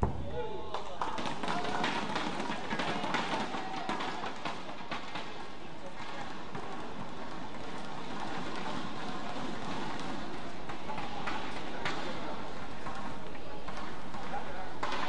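A crowd of spectators cheers and chatters in an echoing hall.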